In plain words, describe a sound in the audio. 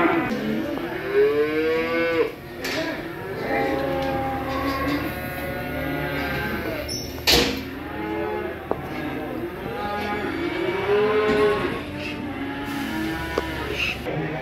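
Goats bleat loudly and repeatedly close by.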